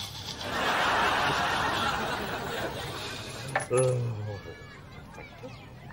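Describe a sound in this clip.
A man chuckles quietly.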